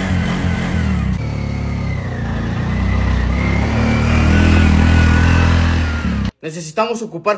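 A motor rickshaw engine rumbles and whirs.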